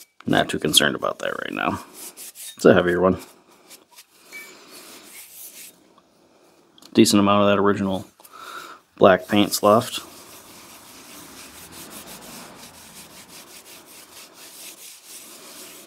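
A pad scrubs and scrapes against metal in short strokes.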